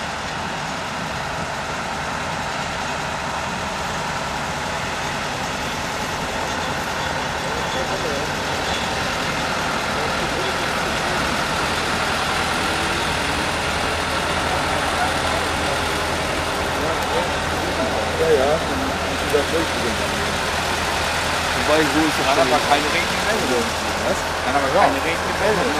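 A small diesel locomotive engine rumbles steadily nearby.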